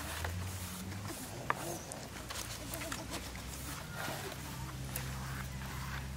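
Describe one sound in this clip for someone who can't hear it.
Palm leaves rustle as hands fold them.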